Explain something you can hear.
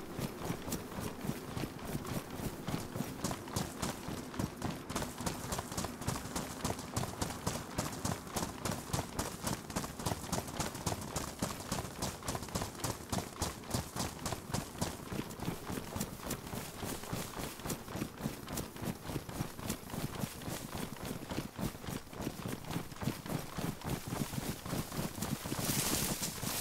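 Quick footsteps run through tall grass.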